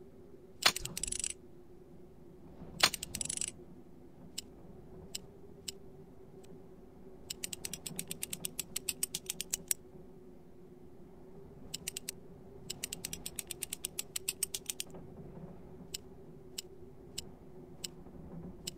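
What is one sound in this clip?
A safe's combination dial clicks in quick runs as it turns.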